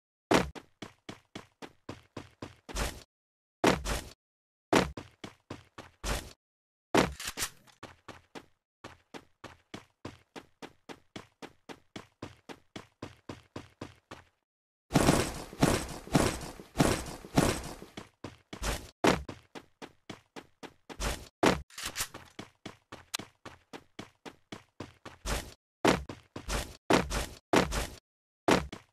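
Footsteps patter quickly and steadily over the ground.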